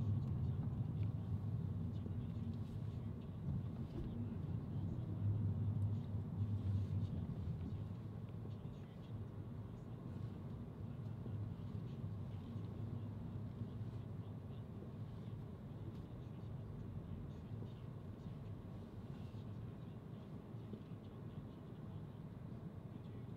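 A car engine hums steadily at low speed.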